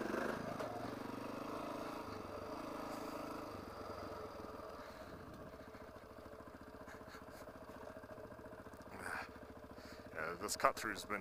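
A dirt bike engine hums steadily.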